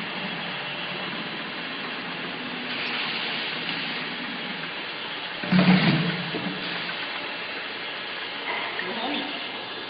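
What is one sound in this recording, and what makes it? A labelling machine hums and whirs steadily.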